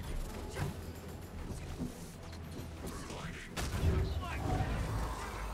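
Energy blasts and hits crash in a video game fight.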